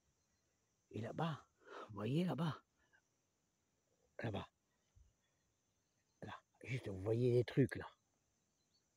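A man talks close by, with pauses.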